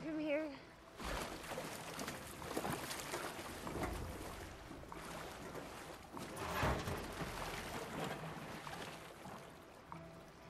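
Waves rush and churn loudly.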